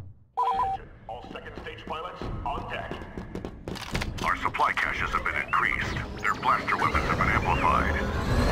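Blaster shots crackle in rapid bursts.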